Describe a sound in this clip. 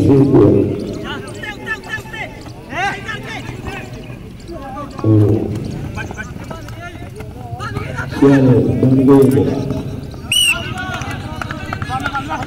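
Young men shout and call out across an open field outdoors.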